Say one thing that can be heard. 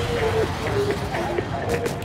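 Liquid ink splashes with a loud splat.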